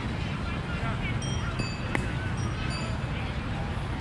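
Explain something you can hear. A cricket bat strikes a ball in the distance.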